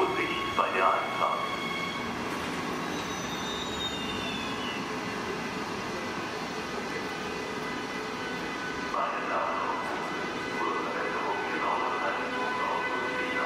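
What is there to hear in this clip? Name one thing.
A locomotive pulls slowly into the station with squealing brakes.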